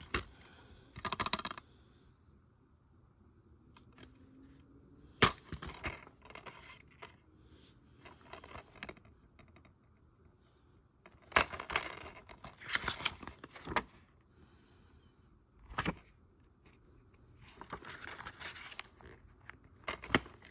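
Plastic and paper rustle as they are handled.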